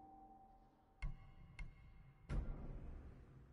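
Short game menu chimes sound as options are selected.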